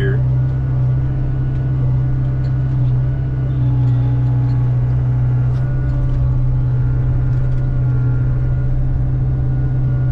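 A diesel engine of a heavy machine rumbles steadily up close.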